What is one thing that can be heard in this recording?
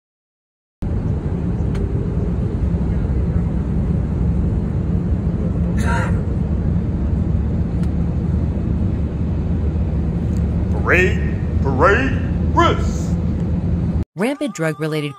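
A steady low engine drone fills an aircraft cabin.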